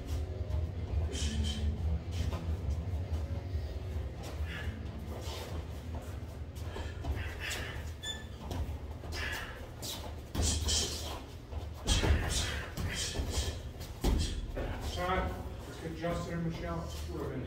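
Sneakers shuffle and squeak on a canvas floor.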